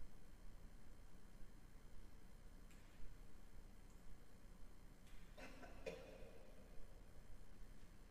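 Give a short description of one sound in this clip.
A man walks with slow, soft footsteps in a large echoing hall.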